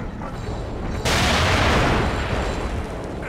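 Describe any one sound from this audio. A loud explosion booms and rumbles, then fades.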